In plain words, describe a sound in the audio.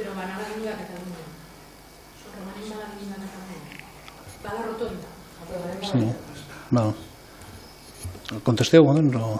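An older man speaks calmly into a microphone in a slightly echoing room.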